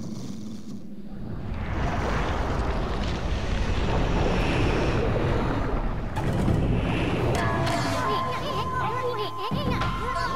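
A deep rumble swells as a huge creature emerges.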